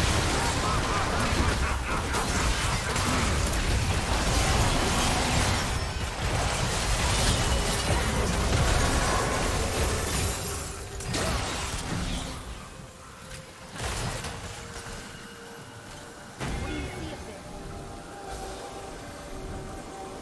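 Game spells crackle and explode in a hectic battle.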